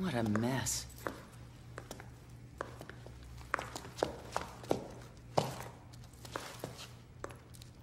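Heavy footsteps clank on a hard floor.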